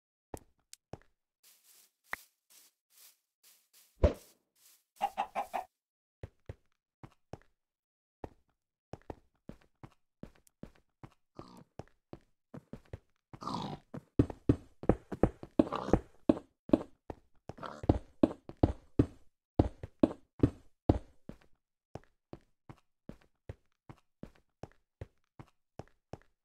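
Stone blocks are set down with short, quick knocks.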